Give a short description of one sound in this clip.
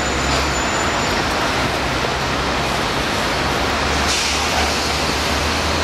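Footsteps climb concrete stairs.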